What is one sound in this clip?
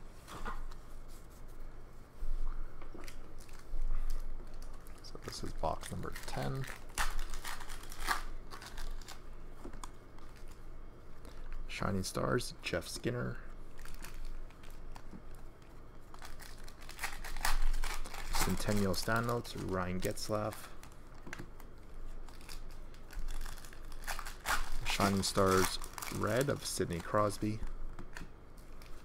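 Trading cards rustle and flick as they are shuffled through.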